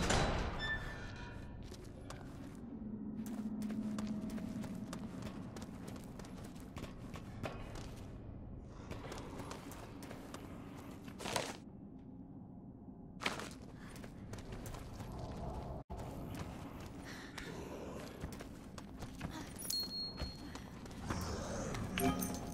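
Footsteps crunch slowly over loose rubble.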